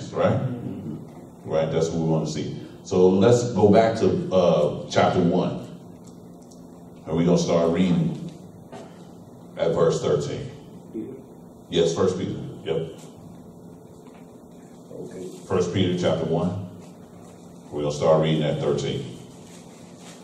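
A man speaks calmly through a microphone, pausing between phrases, in a room with some echo.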